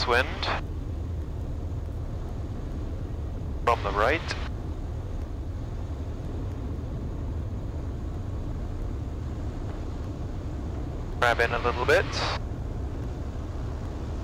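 Wind rushes past a plane in flight.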